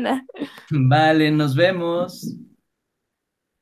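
A man speaks with animation over an online call, close to the microphone.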